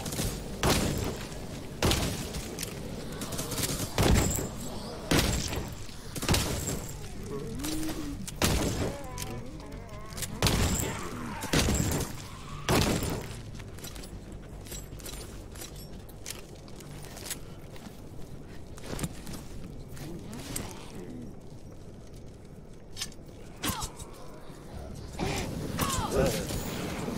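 Weapons clash and hit in quick, heavy blows during a fight.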